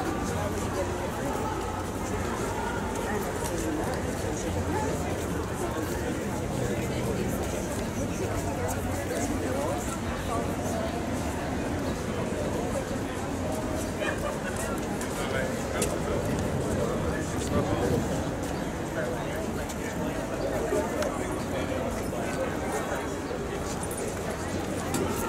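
A crowd of people chatter outdoors in a busy open space.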